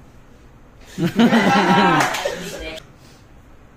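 Teenage boys laugh loudly together.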